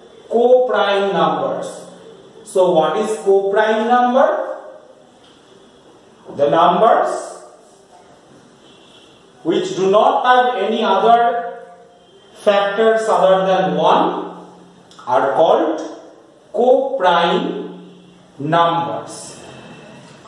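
A man speaks clearly and slowly, as if teaching, close by.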